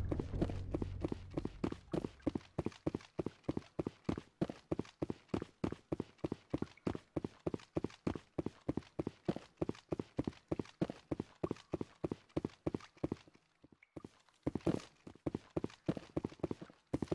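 Heavy boots thud in quick, even footsteps.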